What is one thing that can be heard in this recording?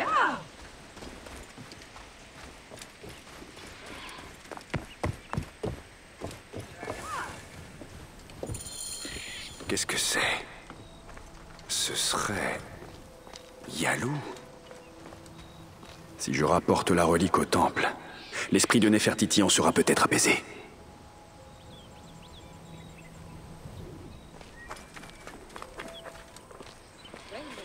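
Footsteps run over stony ground.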